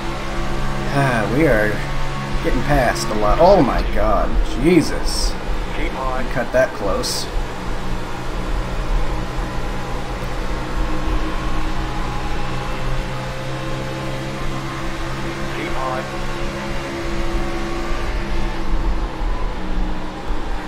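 A race car engine roars at a steady high pitch.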